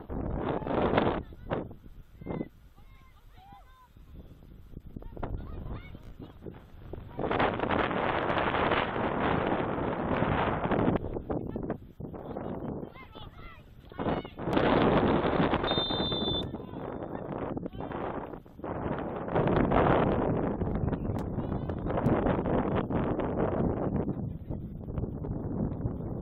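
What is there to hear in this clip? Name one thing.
Young women shout to one another in the distance across an open field.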